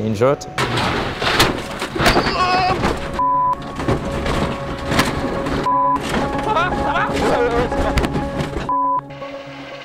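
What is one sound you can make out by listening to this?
A car crashes and thuds through brush.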